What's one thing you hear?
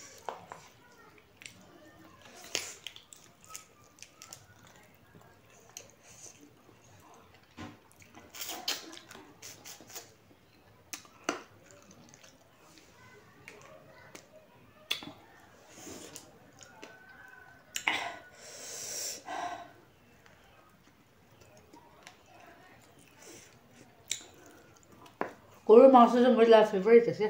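Fingers scrape and squish food on a plate.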